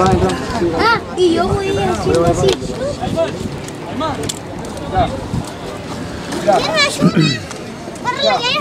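Several young men shout and call out to each other outdoors.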